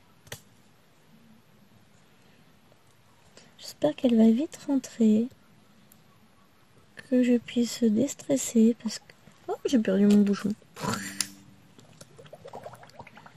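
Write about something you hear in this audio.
A drill pen taps softly and repeatedly on a stiff surface.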